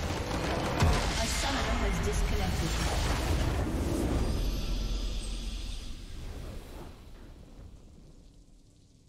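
A game structure explodes with a deep booming rumble that slowly fades.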